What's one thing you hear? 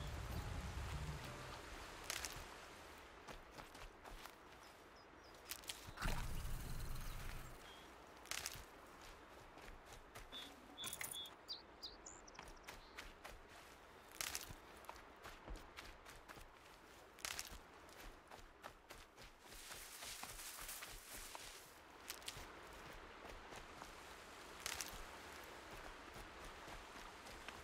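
Wind blows softly outdoors.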